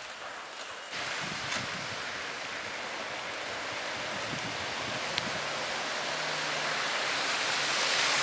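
Car tyres hiss through wet slush as vehicles drive slowly past.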